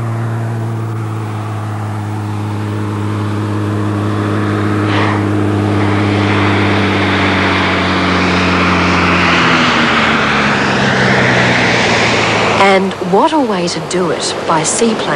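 A small propeller plane engine drones loudly, then drops in pitch as the plane slows.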